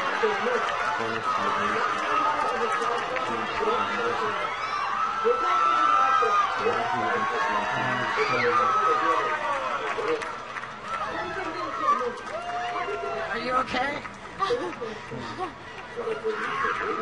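A young woman sings loudly in a strained voice.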